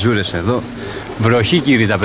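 Pigeons flap their wings in flight close by.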